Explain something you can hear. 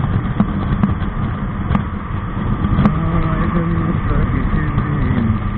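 A motorcycle engine hums steadily as the bike rides along a road.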